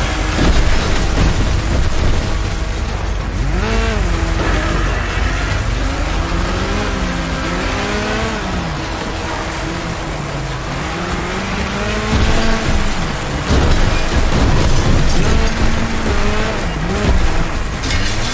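Metal crunches as vehicles crash together.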